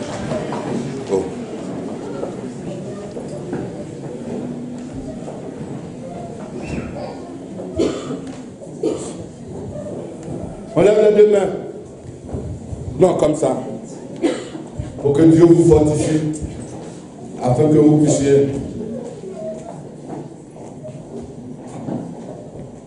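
A man preaches with passion into a microphone, heard through loudspeakers in an echoing hall.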